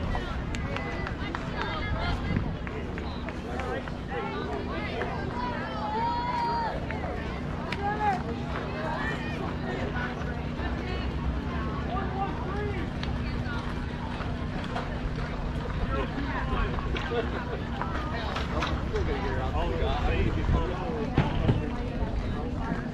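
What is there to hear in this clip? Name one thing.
A crowd of children and adults chatter and cheer outdoors.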